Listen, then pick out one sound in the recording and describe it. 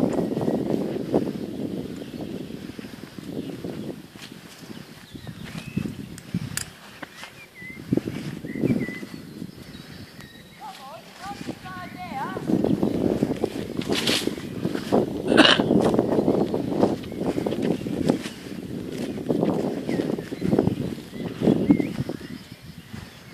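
Horses walk with soft hoof thuds on grass.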